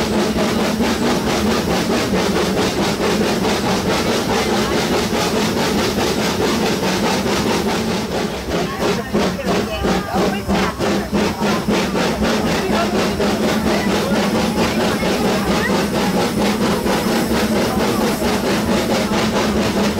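A steam train rattles and clacks steadily along the track.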